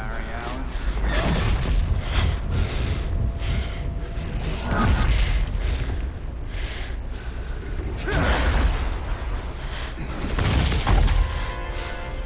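Heavy blows thud and crash during a fight.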